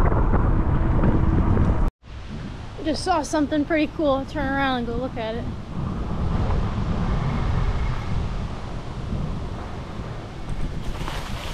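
Bicycle tyres roll on pavement.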